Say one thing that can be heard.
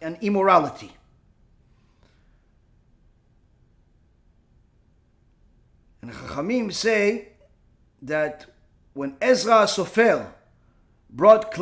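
A middle-aged man speaks calmly in phrases with pauses, close to a microphone.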